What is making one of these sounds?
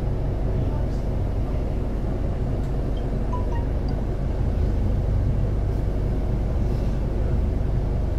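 City traffic hums nearby.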